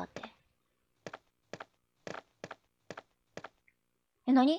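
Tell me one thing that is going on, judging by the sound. Footsteps tap on a hard floor at a steady pace.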